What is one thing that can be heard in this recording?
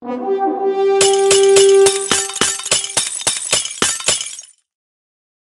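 Game sound effects pop and smash rapidly as balls break.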